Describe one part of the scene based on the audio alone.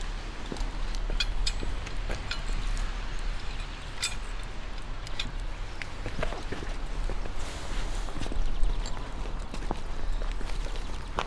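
A metal spit clinks and knocks.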